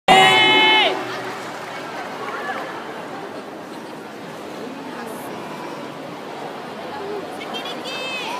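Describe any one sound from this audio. A large crowd murmurs in a wide echoing hall.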